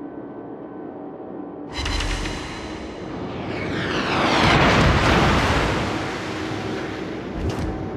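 Shells explode with loud booms.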